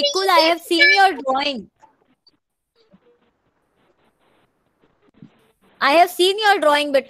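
A young woman speaks earnestly over an online call, with a pause between phrases.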